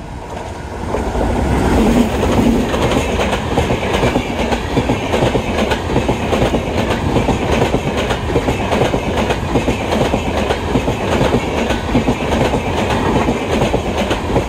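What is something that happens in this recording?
Train wheels clatter rapidly over rail joints.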